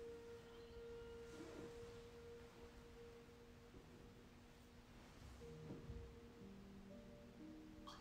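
A glass cup clinks softly on a table.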